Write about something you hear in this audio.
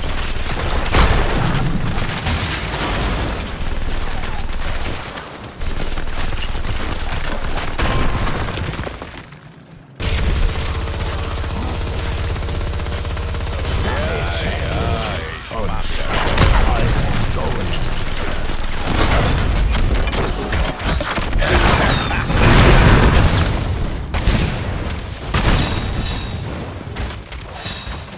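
Rapid game gunfire and laser blasts crackle throughout.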